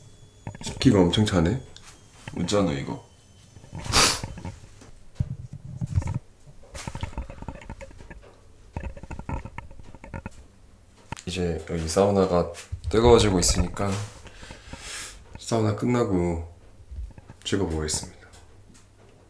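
A young man talks quietly and close to the microphone.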